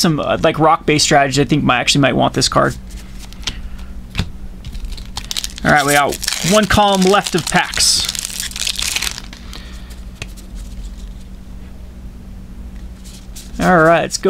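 Playing cards shuffle and slide softly against each other.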